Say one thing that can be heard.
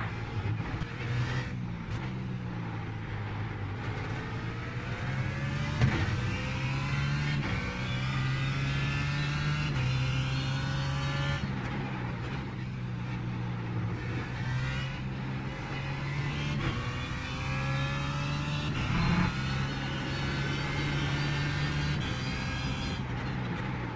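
A race car engine roars, revving up through the gears and dropping with each shift.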